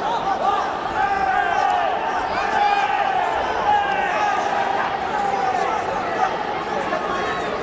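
A large crowd cheers and shouts in an echoing arena.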